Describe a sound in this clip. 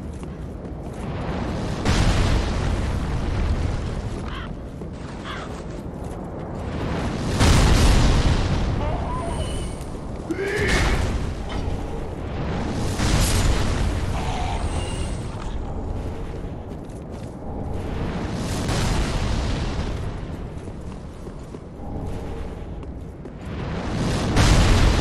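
Heavy armored footsteps crunch and clank over stone and gravel.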